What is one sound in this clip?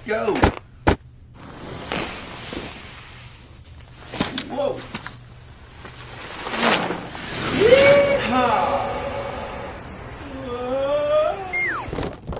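Skis scrape and clatter across a wooden floor.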